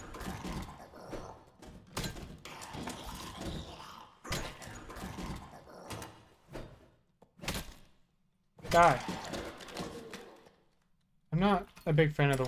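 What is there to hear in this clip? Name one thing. A wooden chest lid creaks and thuds.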